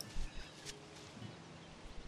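Footsteps patter quickly over dry leaves.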